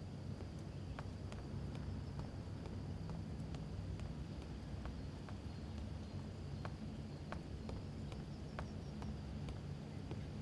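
Footsteps tap on wooden stairs.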